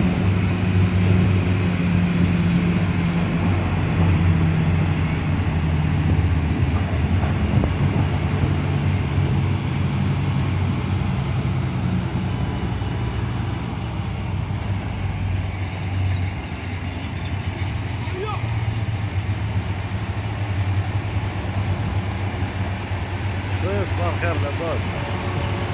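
A heavy truck's diesel engine rumbles loudly and steadily nearby.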